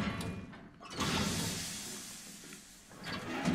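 Steam hisses loudly.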